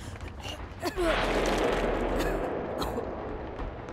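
A person vaults through a window with a rushing thud.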